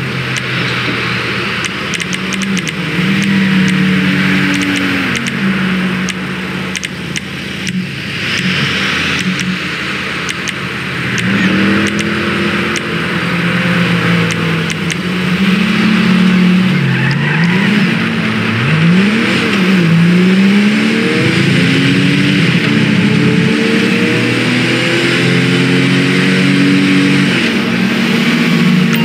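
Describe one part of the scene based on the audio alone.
A car engine hums and revs as a vehicle drives along a road.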